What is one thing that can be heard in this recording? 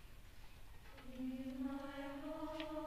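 A choir begins to sing together in a large, echoing hall.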